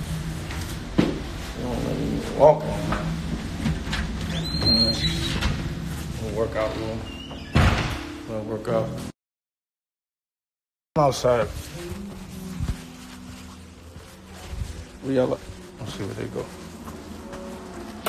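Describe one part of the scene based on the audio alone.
A middle-aged man talks casually, close to a phone microphone.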